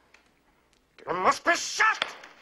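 A man shouts loudly and angrily close by.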